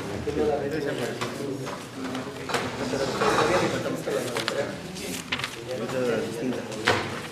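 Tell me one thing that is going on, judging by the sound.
Paper sheets rustle and flip.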